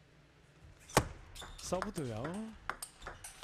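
A table tennis ball clicks sharply against paddles and the table in a quick rally.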